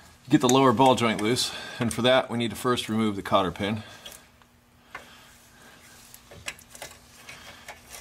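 A plastic clip creaks and clicks as a tool pries it loose.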